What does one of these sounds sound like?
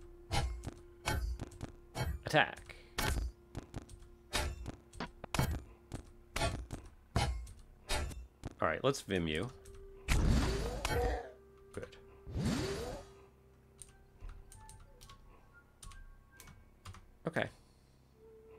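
Short electronic game sound effects thud and click in quick succession.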